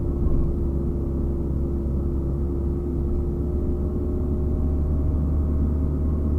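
A car engine hums steadily from inside the car as it drives along a road.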